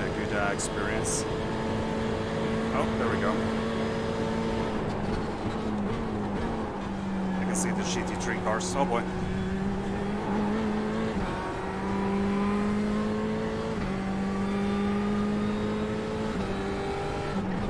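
A racing car engine hums steadily, shifting pitch as it changes gear.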